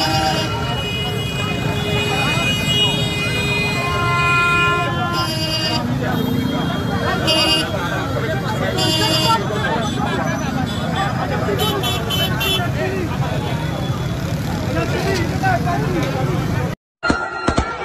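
Motorbike engines rumble nearby.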